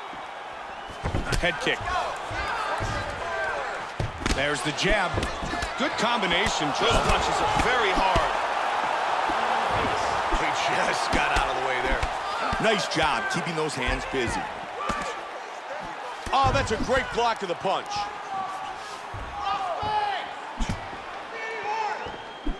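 A crowd cheers and murmurs in a large arena.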